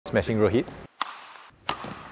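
A racket strikes a shuttlecock with a sharp crack.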